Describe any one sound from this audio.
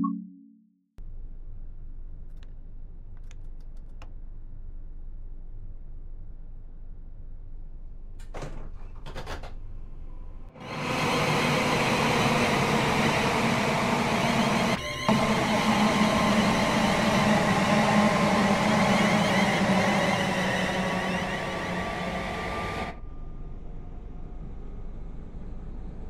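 A train's motor hums steadily from inside the cab.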